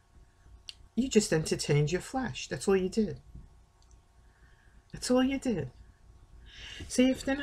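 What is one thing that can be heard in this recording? An older woman speaks calmly and close to a microphone, in short bursts with pauses.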